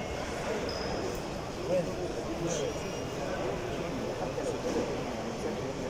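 Several men talk quietly nearby.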